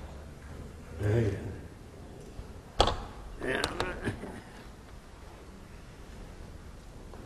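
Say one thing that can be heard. A man speaks in a large echoing hall.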